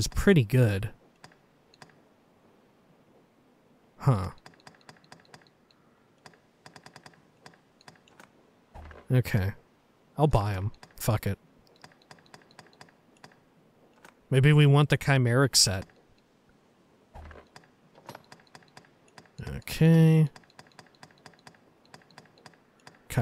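A game menu ticks with quick, soft clicks as selections move.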